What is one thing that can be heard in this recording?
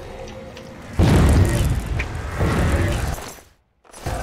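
A heavy weapon swings and strikes with loud thuds.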